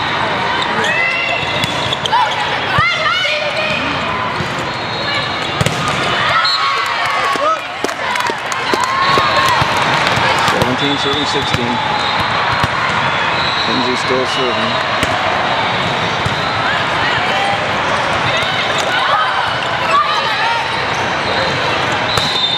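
A volleyball thumps as players hit it.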